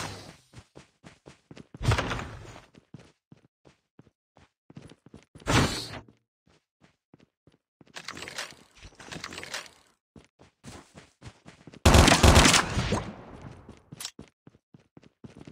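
Footsteps patter quickly on dirt and metal.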